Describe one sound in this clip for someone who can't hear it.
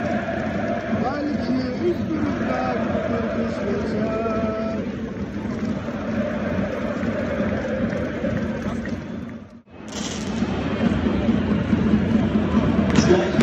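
A large crowd chants and cheers loudly, echoing around a vast open space.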